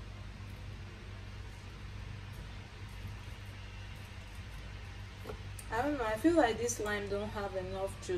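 A lime is squeezed and twisted on a hand juicer, squishing wetly.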